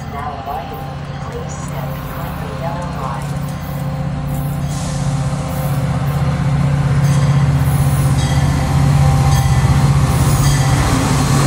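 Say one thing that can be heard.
A train engine rumbles as a train approaches and grows steadily louder.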